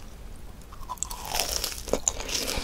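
A woman bites into a crunchy fried cheese ball.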